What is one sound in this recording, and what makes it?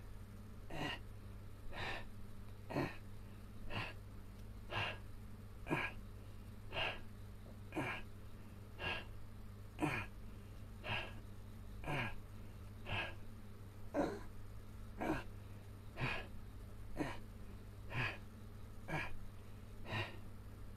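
A man breathes out hard in a steady rhythm, about once a second.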